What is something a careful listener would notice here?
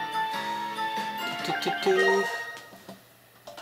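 Video game music plays with bright electronic tones, then cuts off.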